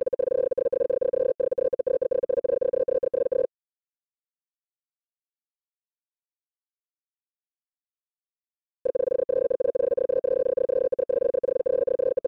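Rapid electronic blips chatter as dialogue text types out.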